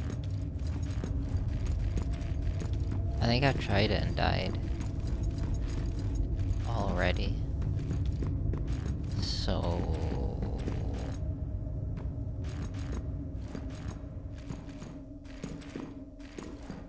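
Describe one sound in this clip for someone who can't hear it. Footsteps run quickly across a hard metal floor.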